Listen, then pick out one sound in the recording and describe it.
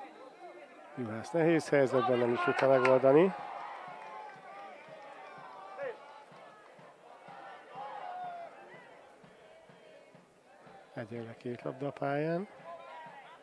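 A crowd of spectators chants loudly.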